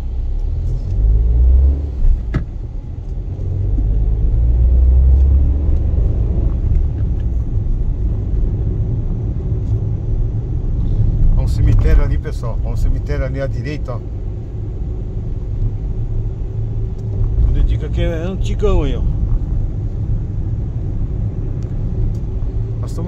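Tyres rumble on asphalt as a car drives, heard from inside.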